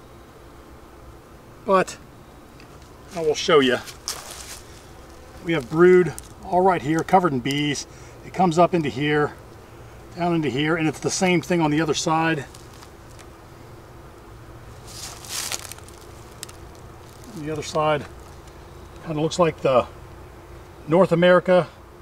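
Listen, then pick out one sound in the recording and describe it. Honeybees buzz in a low, steady hum.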